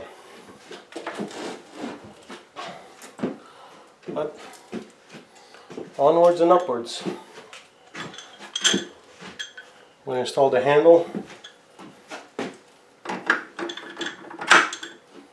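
Metal parts of a small machine click and knock as a man handles them.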